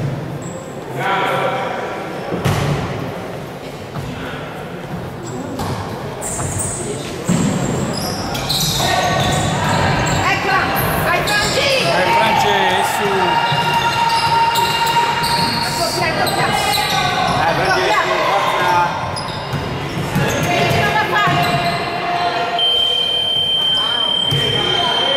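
Young players shout to each other.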